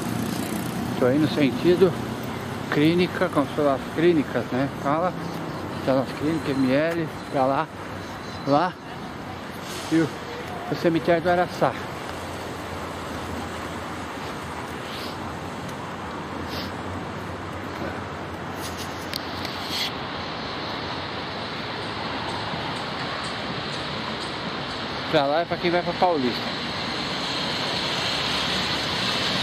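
Traffic rumbles steadily along a nearby road.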